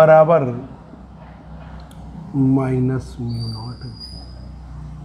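A man speaks in a calm lecturing voice.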